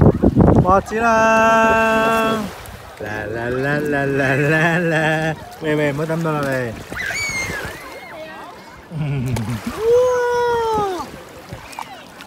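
A young child talks and squeals up close.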